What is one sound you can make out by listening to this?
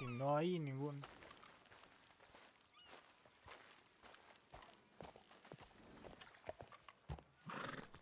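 Footsteps thud on dirt and wooden boards.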